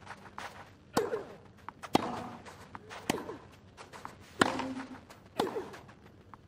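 A tennis ball is struck back and forth with sharp pops of a racket.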